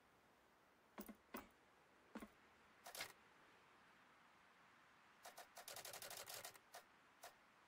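Small mechanical clicks tick in quick bursts.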